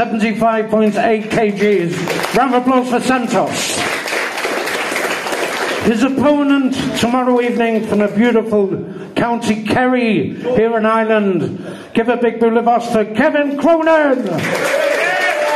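A man announces loudly through a microphone, drawing out his words.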